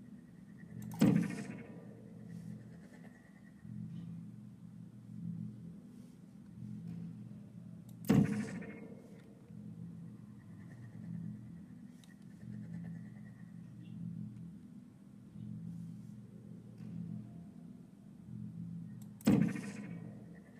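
A futuristic gun fires with a sharp, ringing zap, a few times.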